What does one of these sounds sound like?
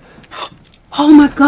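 A young woman exclaims loudly in surprise.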